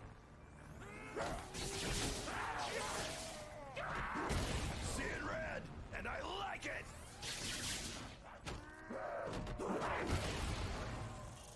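Monsters growl and snarl close by.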